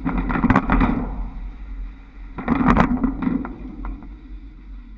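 Trolley poles clatter loudly over overhead wire junctions.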